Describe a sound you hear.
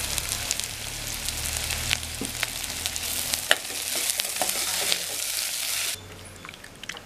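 A metal spoon scrapes and clinks against a pot.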